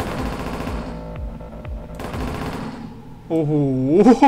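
Electronic game sound effects whoosh and buzz.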